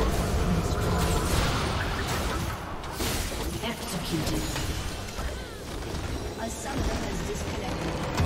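Game spells and attacks clash in a noisy battle.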